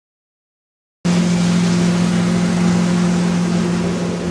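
A boat engine drones steadily nearby.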